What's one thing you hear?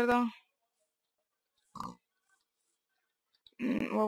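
A pig squeals nearby.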